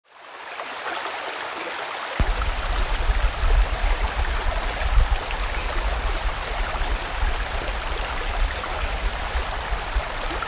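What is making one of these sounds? A stream rushes and splashes steadily over rocks outdoors.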